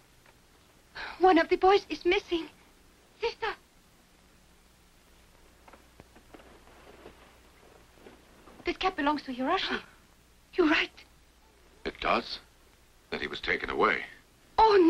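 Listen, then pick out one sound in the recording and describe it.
A young woman speaks gently nearby.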